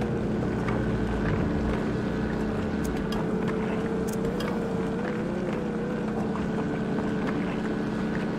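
A drill grinds steadily against rock with a low hum.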